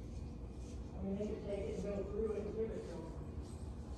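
A woman talks quietly, some distance away.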